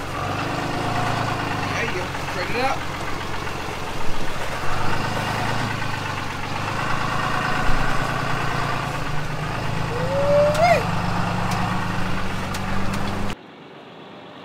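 A car drives slowly over rough ground.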